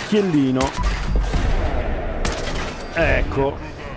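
A rifle fires with a loud bang.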